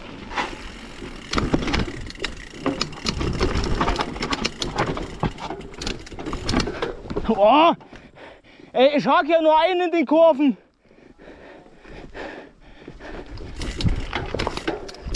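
A mountain bike rattles and clatters over rough rocks.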